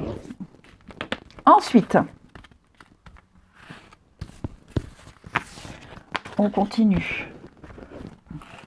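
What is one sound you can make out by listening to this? Playing cards shuffle and slide across a wooden table.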